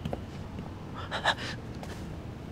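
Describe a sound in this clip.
A young man gasps in surprise close by.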